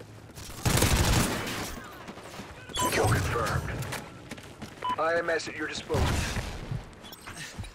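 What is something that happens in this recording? Gunfire cracks in short, loud bursts.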